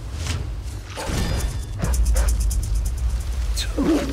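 A magic spell bursts with a loud whoosh.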